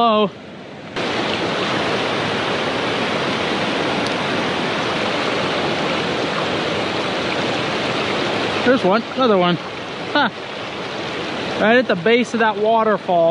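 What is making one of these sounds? A shallow stream rushes and splashes over rocks close by.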